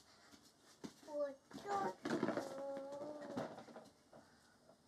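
A young girl sings in a high voice close by.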